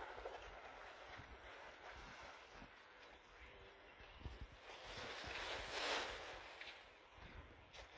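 Leafy branches rustle and brush past closely.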